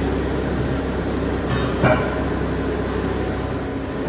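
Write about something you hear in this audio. Heavy metal clanks as a steel post is set down.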